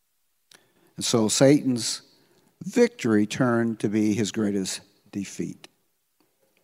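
An elderly man speaks calmly into a microphone in an echoing hall.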